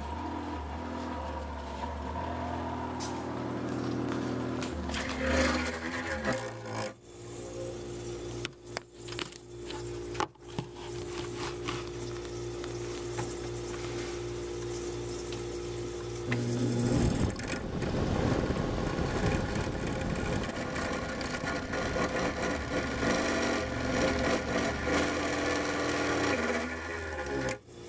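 A refrigerator hums steadily.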